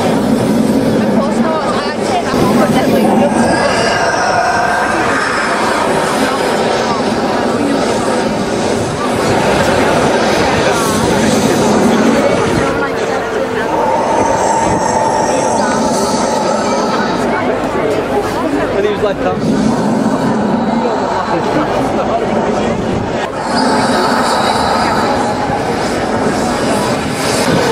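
A large crowd murmurs and chatters close by, outdoors.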